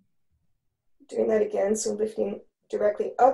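A woman speaks calmly, heard through an online call.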